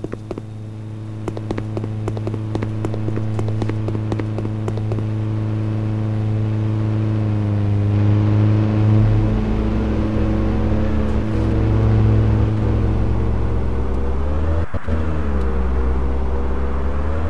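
A heavy truck engine drones and revs.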